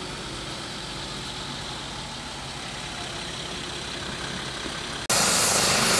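An ambulance engine hums as the vehicle rolls slowly forward.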